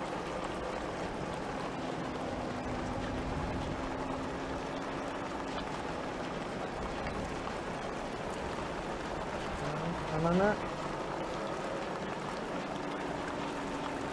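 Rain patters steadily on a windscreen.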